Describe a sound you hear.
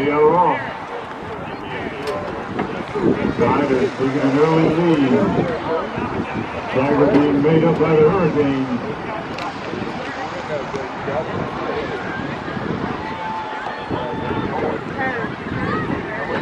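A crowd of spectators talks and cheers outdoors.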